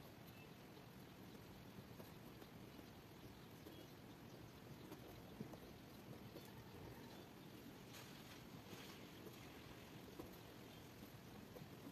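A ballpoint pen scratches across paper as someone writes by hand.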